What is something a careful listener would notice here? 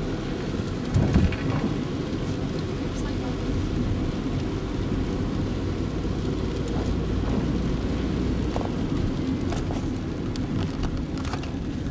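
Raindrops patter on a car window.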